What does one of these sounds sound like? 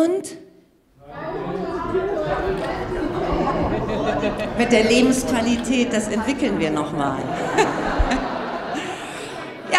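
A large crowd of voices sings and chatters together.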